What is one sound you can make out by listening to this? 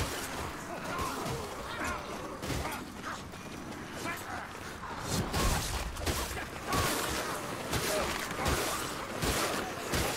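Creatures growl and shriek as they attack.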